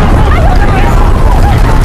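A crowd of people shout in panic.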